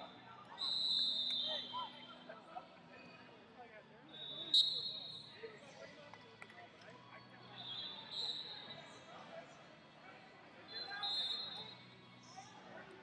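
Voices chatter in a large echoing hall.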